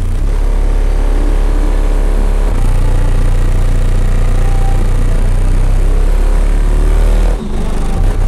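A car engine idles loudly close by with a deep, throbbing rumble.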